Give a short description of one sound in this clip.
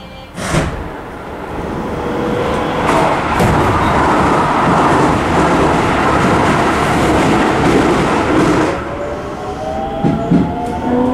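A train rumbles and rattles as it pulls away and picks up speed.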